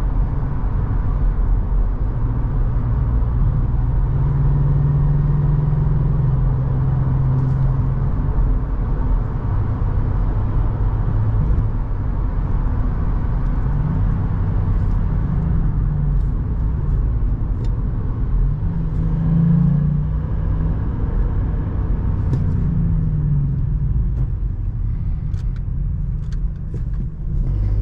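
A car engine hums steadily and rises and falls in pitch as it speeds up and shifts gears.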